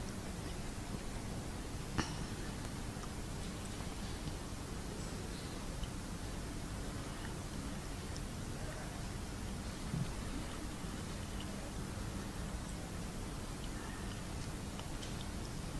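A woman recites in a melodic voice through a microphone.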